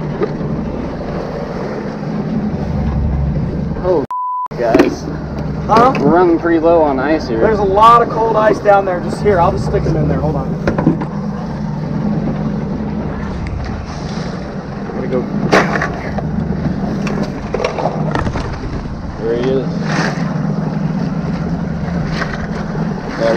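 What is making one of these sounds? A boat engine hums steadily over rushing water and wind.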